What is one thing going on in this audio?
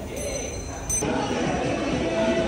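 People chatter in a large echoing hall.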